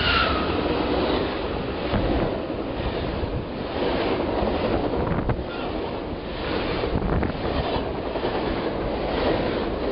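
A passenger train rushes past close by with a loud, steady roar.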